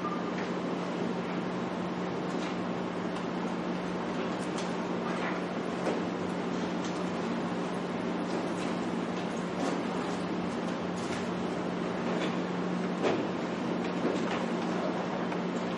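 Papers rustle and flip.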